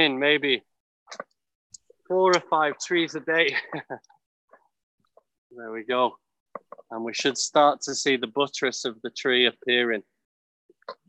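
A young man talks casually and closely through an online call.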